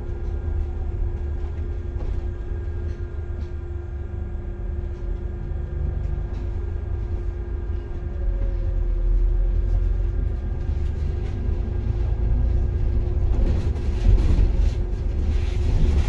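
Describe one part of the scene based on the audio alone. A bus engine hums steadily from inside the vehicle.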